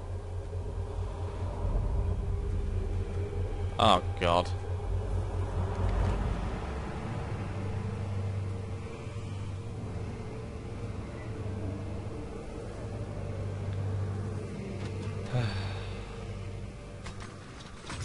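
Wind rumbles low and steady outdoors.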